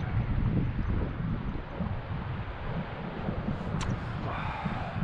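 Wind buffets loudly outdoors by open water.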